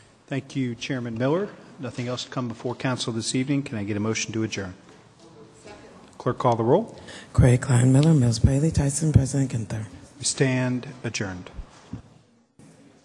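A man speaks calmly into a microphone in a large echoing chamber.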